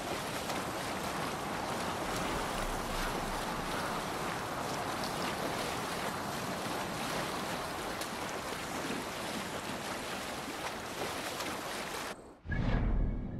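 Water rushes and splashes steadily against a sailing boat's hull.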